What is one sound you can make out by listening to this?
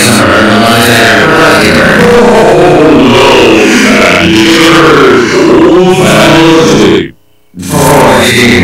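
A man speaks gruffly and sternly.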